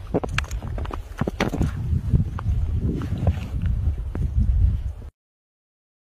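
Paws crunch through deep snow.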